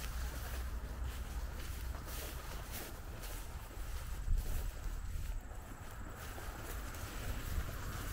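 Wind gusts outdoors with a low, steady rumble.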